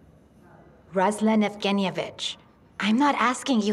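An elderly woman speaks with concern.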